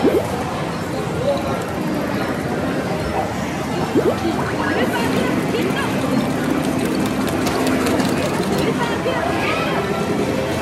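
Arcade game machines beep and chime in a busy, noisy hall.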